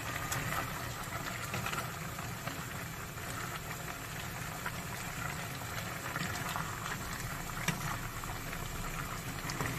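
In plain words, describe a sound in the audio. A wooden spatula scrapes and knocks against a pan.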